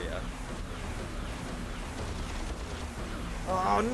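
Explosions boom in quick succession.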